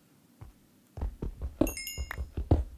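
Footsteps thud on soft, gritty ground.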